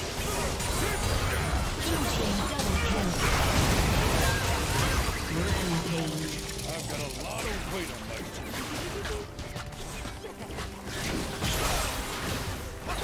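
Magic spells crackle and burst in a fast, noisy fight.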